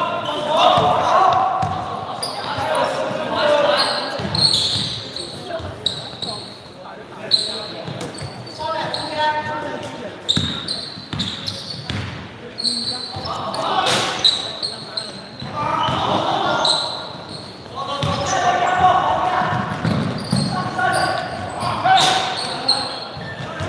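Young boys shout and call out to each other in an echoing hall.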